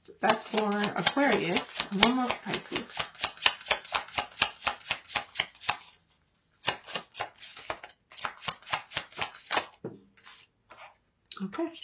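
Playing cards riffle and slide softly as they are shuffled by hand.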